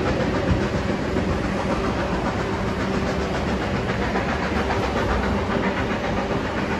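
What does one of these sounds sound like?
A train rumbles and clatters steadily along the track.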